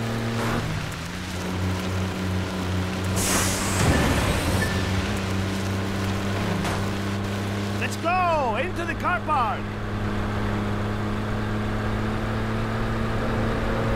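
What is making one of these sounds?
A city bus engine drones under throttle.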